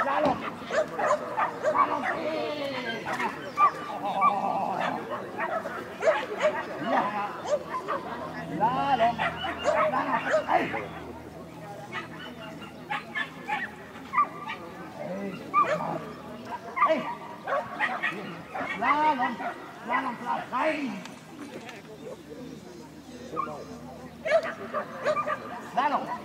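A woman calls out commands to a dog outdoors.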